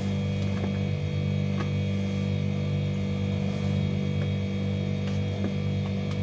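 Hands pick chopped vegetables from a plastic container with soft clicks and rustles.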